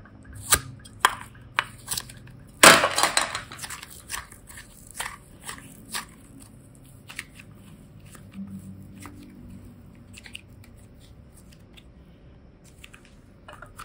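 Soft putty squelches and crackles as fingers knead and stretch it.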